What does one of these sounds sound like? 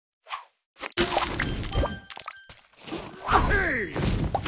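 Game candies pop and chime as they match.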